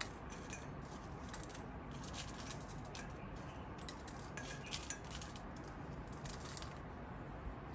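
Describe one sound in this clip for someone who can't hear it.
Scissors snip through dried chillies.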